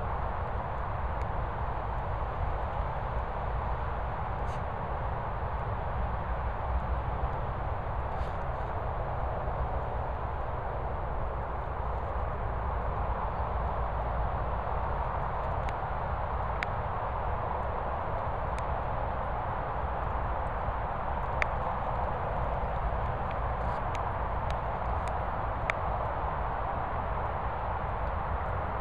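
Wind rushes steadily across the microphone outdoors.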